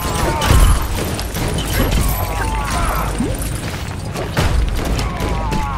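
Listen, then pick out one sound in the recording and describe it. Energy blasts zap and crackle in quick bursts.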